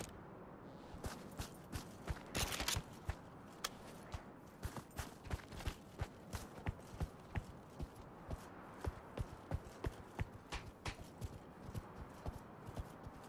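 Footsteps tread steadily on a hard floor.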